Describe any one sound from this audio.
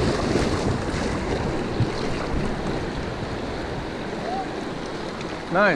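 Rapids rush and splash loudly around a small boat.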